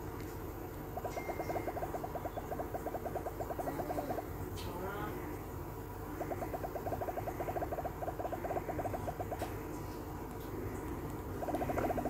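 Rapid ticking game blips sound as balls bounce off blocks.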